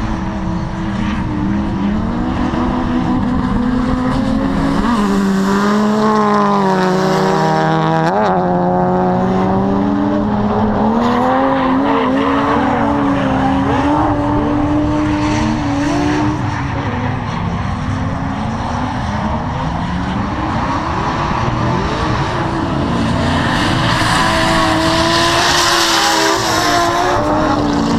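Car engines rev and whine loudly in the distance, rising and falling.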